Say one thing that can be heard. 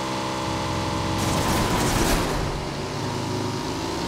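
Another vehicle's engine roars loudly as it passes close by.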